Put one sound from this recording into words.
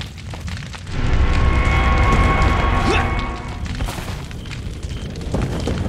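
Flames roar and crackle loudly.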